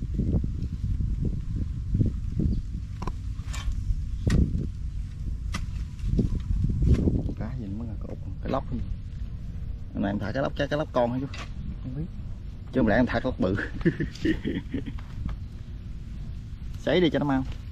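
A wooden pole thuds and scrapes into wet mud.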